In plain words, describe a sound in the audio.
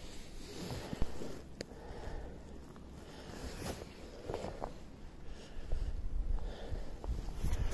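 Boots crunch and scrape on loose rock.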